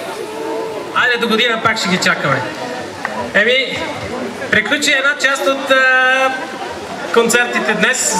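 A man speaks into a microphone over a loudspeaker outdoors.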